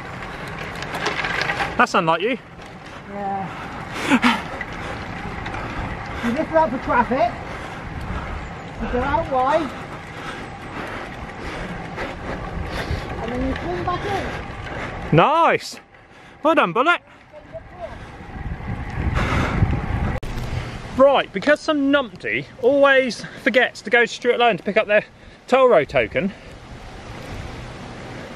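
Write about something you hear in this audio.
Wind rushes past a moving bicycle outdoors.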